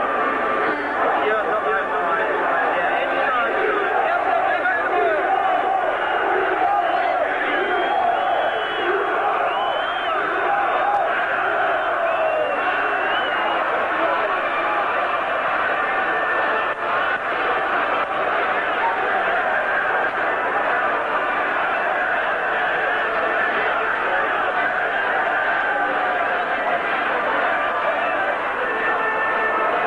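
A huge stadium crowd chants and roars loudly, echoing across the open air.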